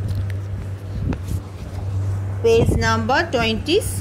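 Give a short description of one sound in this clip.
A page of a book turns with a papery rustle.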